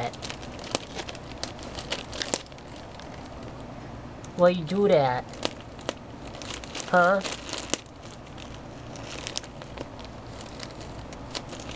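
Plastic wrapping crinkles as a cat paws and rolls against it.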